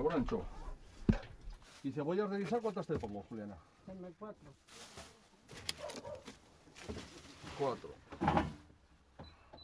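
An elderly woman talks nearby.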